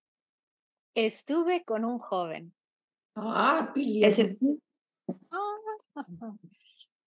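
An older woman speaks expressively over an online call.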